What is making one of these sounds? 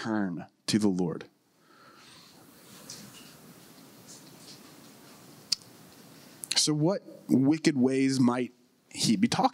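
A man speaks with feeling into a microphone, pausing between phrases.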